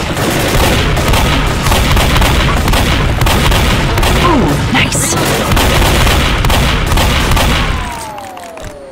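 Shotguns fire in rapid, loud bursts.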